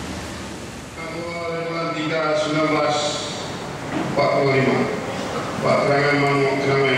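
A crowd sings together in a large echoing hall.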